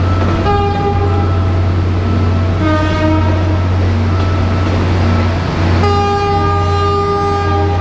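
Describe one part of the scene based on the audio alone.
A train horn blares in several long blasts.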